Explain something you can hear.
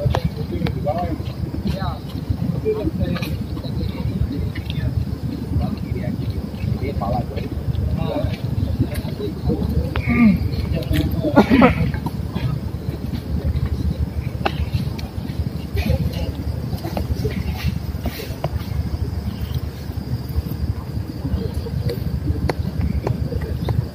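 A man and a woman talk nearby outdoors.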